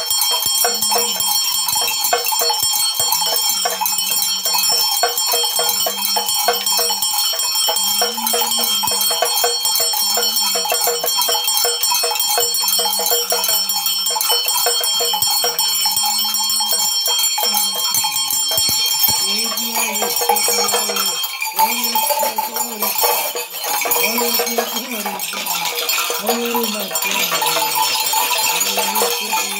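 Rattles of seed pods and shells shake rapidly and steadily.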